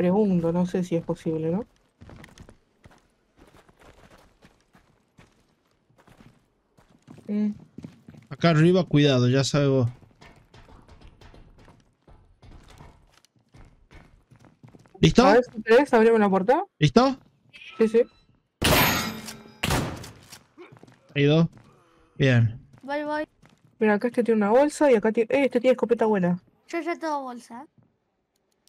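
A man talks with animation close to a microphone.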